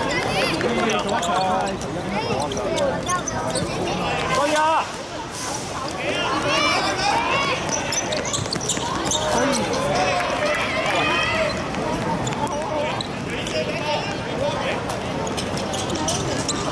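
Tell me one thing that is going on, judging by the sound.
Children shout to each other while playing football.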